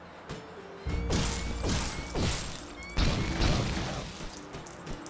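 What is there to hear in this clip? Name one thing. Leafy branches crash and rustle as a bush is smashed.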